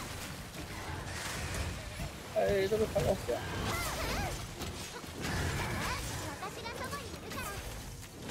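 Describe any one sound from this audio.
A huge beast growls and roars.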